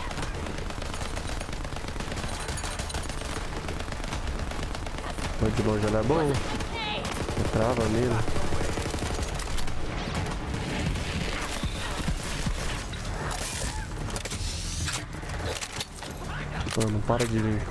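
Rapid gunfire crackles from a video game.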